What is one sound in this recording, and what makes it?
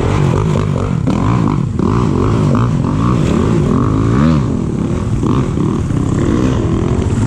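A dirt bike engine revs and buzzes up close, rising and falling in pitch.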